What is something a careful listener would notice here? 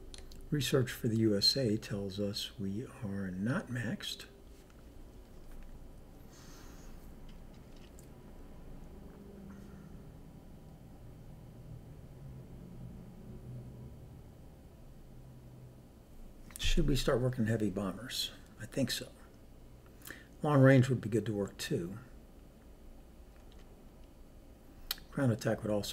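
A man talks calmly and closely into a microphone, with pauses.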